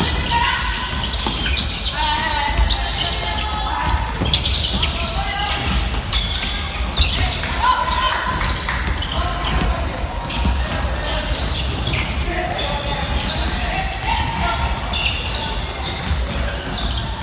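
Young voices shout and call out across a large echoing gym.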